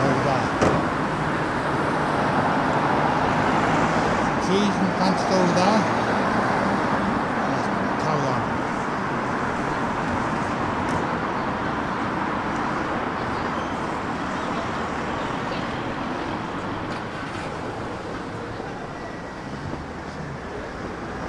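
Traffic hums steadily nearby outdoors.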